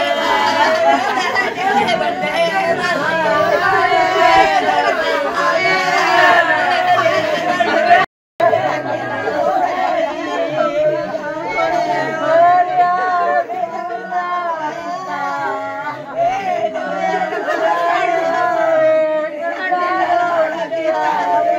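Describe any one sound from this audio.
Women wail and sob loudly nearby.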